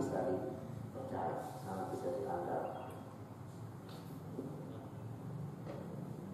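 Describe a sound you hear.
A middle-aged man speaks calmly into a nearby microphone.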